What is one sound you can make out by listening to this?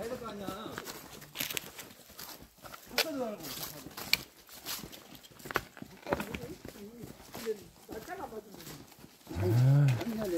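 Footsteps crunch on dry leaves and stones.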